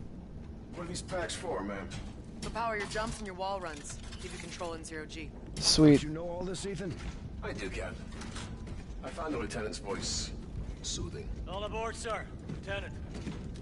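A man speaks calmly over a radio.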